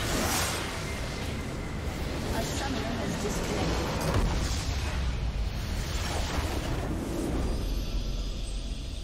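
Game spell effects crackle and whoosh in rapid bursts.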